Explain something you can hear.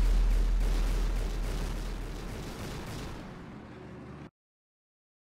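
A mech's engine rumbles and fades.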